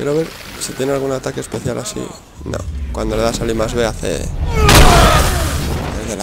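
Heavy blows thud and splatter against bodies.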